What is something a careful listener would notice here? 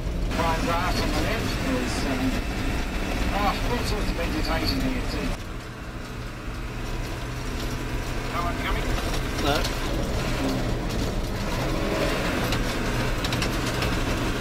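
Tyres crunch and rumble on a gravel road.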